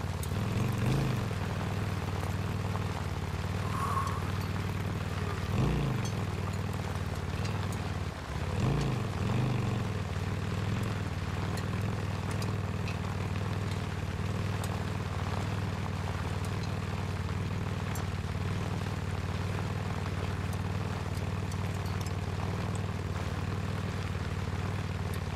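Tyres crunch on gravel.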